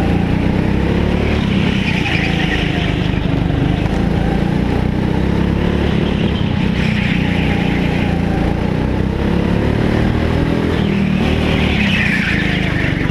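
A small kart engine buzzes loudly and steadily close by.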